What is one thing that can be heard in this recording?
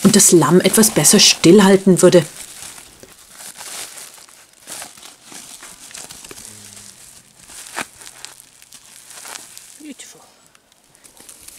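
A plastic sack rustles and crinkles.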